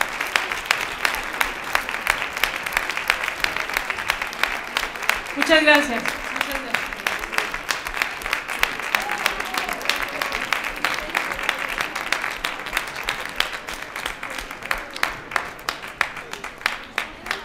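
An audience applauds steadily in a hall.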